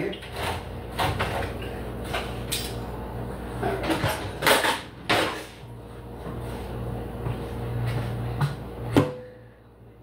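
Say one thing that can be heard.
Dishes and utensils clatter on a stove top.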